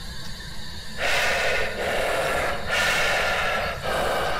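A radio hisses with loud static, sweeping between stations.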